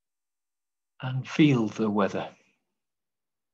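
An older man speaks briefly through an online call microphone.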